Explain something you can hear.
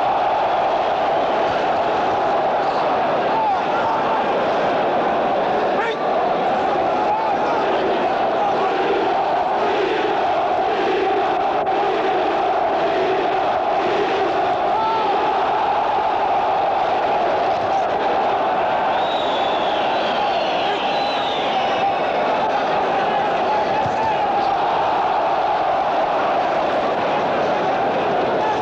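A large crowd cheers and roars steadily in a big echoing hall.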